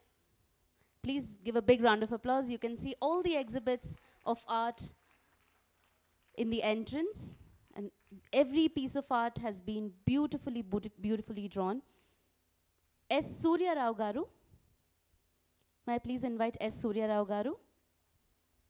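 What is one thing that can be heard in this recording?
A woman speaks clearly through a microphone, in short bursts with pauses.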